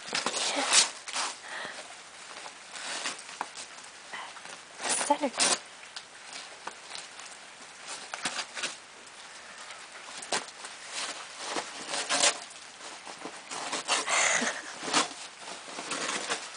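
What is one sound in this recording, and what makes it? A dog tears and rustles wrapping paper.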